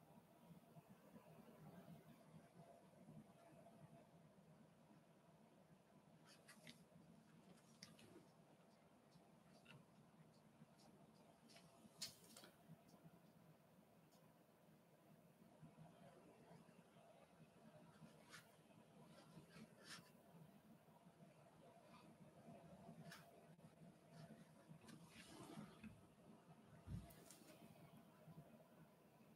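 A fine brush lightly strokes paper.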